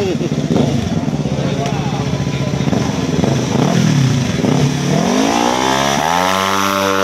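A motorcycle engine revs loudly nearby.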